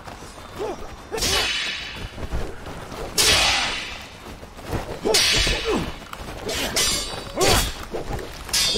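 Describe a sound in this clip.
Swords clash and swish in a game fight.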